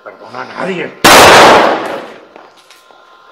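A gunshot bangs loudly and echoes.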